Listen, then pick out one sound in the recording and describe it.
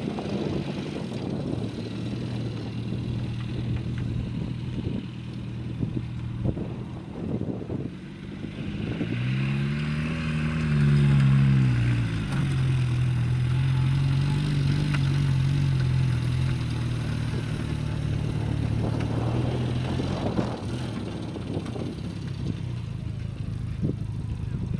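A small car's engine revs and drones, rising sharply then holding steady.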